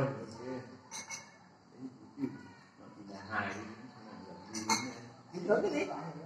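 Several adults talk casually nearby.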